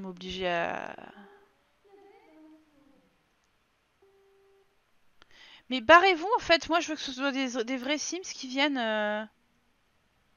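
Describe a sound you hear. A young woman talks with animation through a headset microphone.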